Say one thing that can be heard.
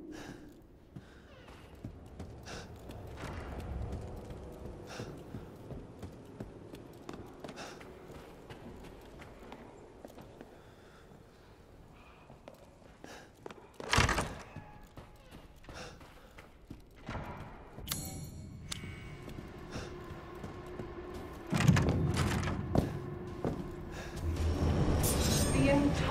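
Footsteps walk steadily across a hard floor indoors.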